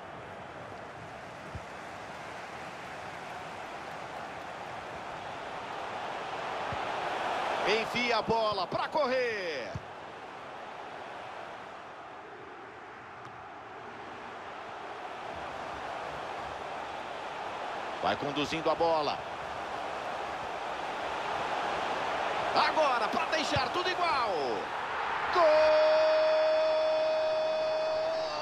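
A stadium crowd murmurs and chants steadily.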